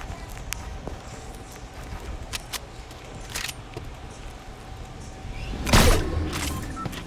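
Wooden building pieces snap into place with short, sharp knocks.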